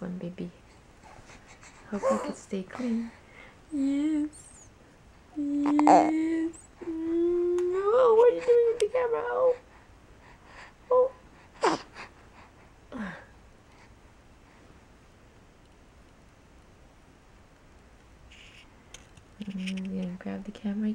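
A baby coos and babbles in high little sounds close by.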